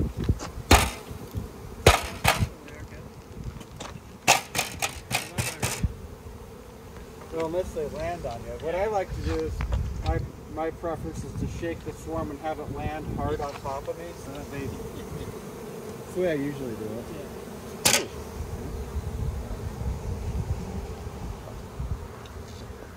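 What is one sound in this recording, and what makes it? A swarm of bees buzzes steadily close by.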